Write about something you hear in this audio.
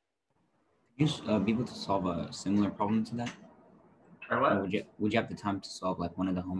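A man speaks calmly and clearly up close.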